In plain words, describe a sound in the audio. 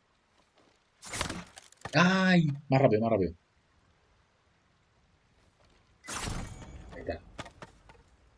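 A sword swishes and slices through bamboo stalks.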